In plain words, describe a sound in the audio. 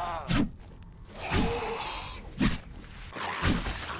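A blade hacks into flesh with heavy thuds.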